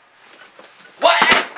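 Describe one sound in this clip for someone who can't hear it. A hand slaps loudly against a person.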